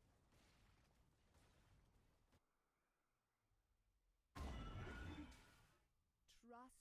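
Game spell effects burst and whoosh.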